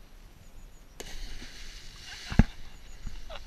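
A body splashes heavily into water below.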